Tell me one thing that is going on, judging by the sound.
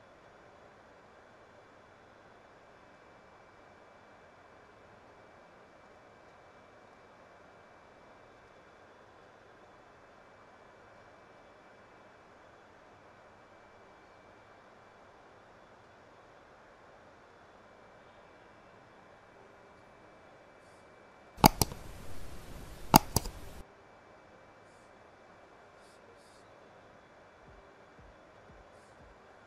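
Jet engines drone steadily in the distance.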